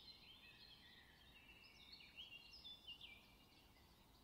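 A bird whistles a series of clear, sliding chirps.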